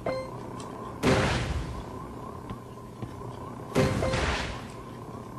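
A game explosion booms.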